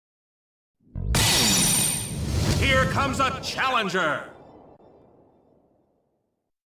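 A loud electronic fanfare plays from an arcade game.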